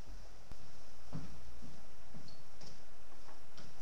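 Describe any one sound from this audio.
Footsteps thud softly on a floor.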